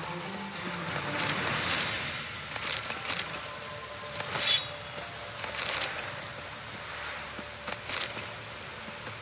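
A sword swishes through the air in quick swings.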